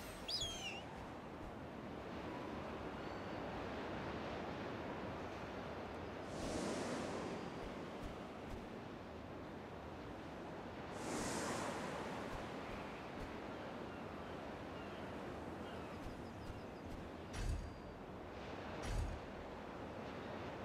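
Wind rushes steadily past, swelling now and then.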